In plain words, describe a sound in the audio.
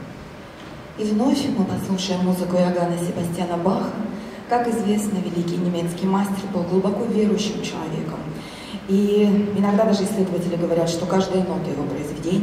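A man speaks clearly to an audience in a large hall.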